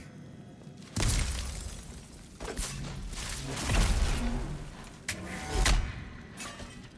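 Lightning crackles and bursts loudly.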